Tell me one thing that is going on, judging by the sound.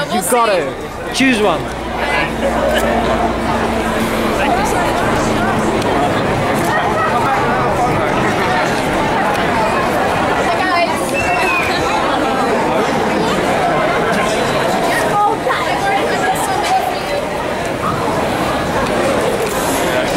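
A crowd of fans chatters and calls out close by, outdoors.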